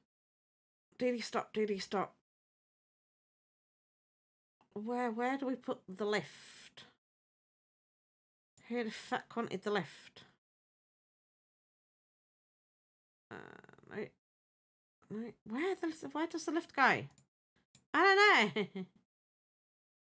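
An older woman talks calmly into a close microphone, in short bursts.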